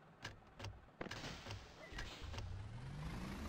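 A bus's folding doors hiss shut.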